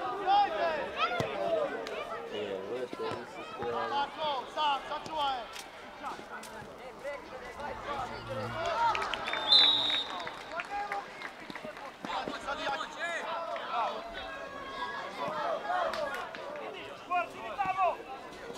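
Young players shout to each other outdoors across an open field.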